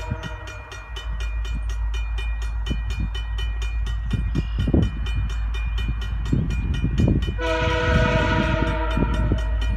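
A train rumbles closer along the tracks.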